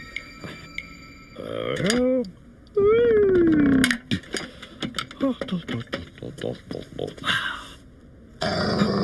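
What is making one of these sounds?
A wooden ladder knocks and clatters.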